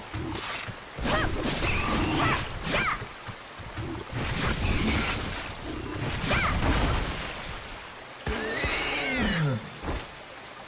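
A beast grunts and squeals in pain.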